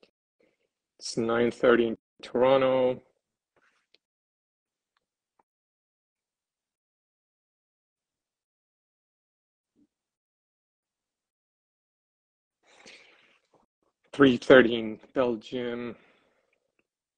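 A middle-aged man speaks calmly and close to a phone microphone, in short bursts with long pauses.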